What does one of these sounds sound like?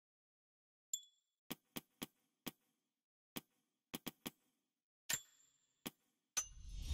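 Menu selections click sharply, one after another.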